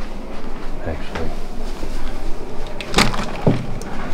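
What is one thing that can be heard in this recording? Men and women chat quietly nearby.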